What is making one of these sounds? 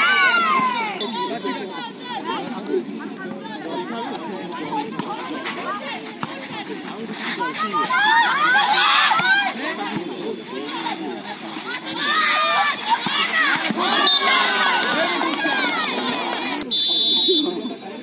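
A crowd of young women cheers and shouts outdoors.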